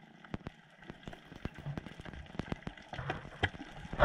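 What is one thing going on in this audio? Air bubbles gurgle and burble from a diver breathing out underwater.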